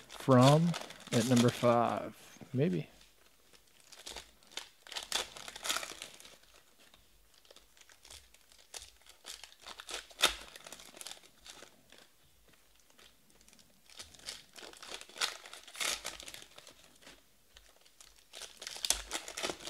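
Foil wrappers crinkle and tear as hands rip open card packs.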